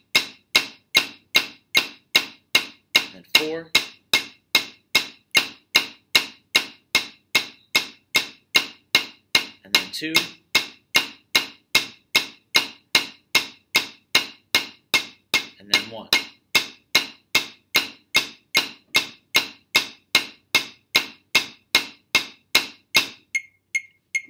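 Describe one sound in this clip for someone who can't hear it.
Drumsticks tap steadily on a practice pad in an even beat.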